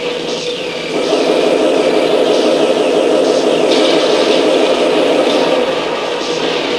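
An explosion bursts with a loud rumble.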